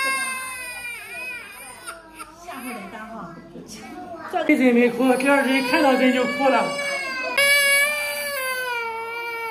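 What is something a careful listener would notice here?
A toddler cries loudly and wails.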